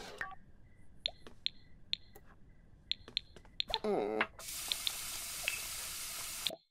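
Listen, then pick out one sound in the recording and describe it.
Short game interface clicks chime as menus open.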